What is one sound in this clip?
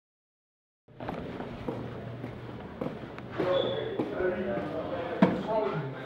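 Footsteps walk along a hard floor in an echoing corridor.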